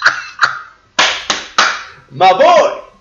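A young man laughs loudly close to a microphone.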